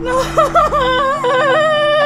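A woman sobs close by.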